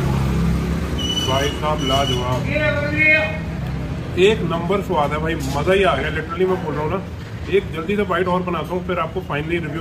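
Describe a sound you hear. A young man talks with animation close up.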